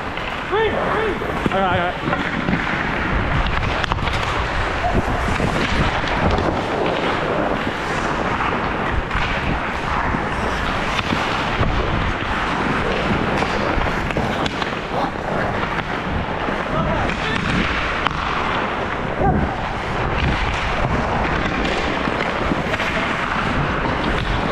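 Skate blades scrape and carve across ice close by.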